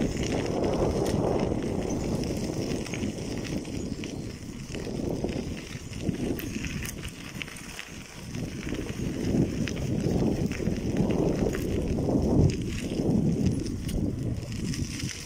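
Wind rumbles across the microphone outdoors.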